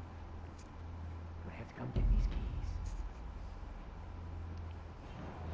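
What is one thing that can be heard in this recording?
Soft footsteps creep slowly across a wooden floor.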